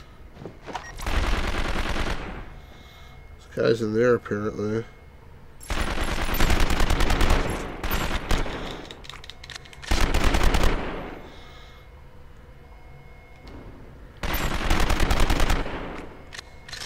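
Gunshots from a video game fire in loud bursts.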